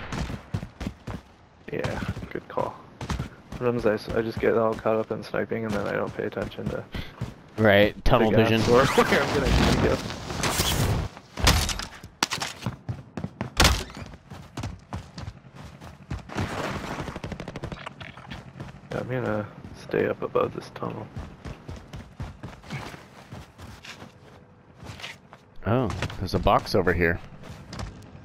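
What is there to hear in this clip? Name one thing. Footsteps crunch quickly over snowy ground.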